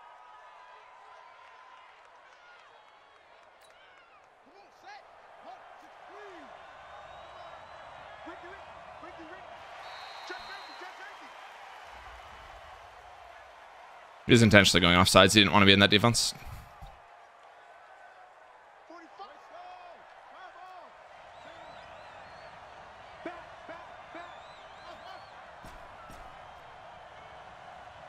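A stadium crowd murmurs.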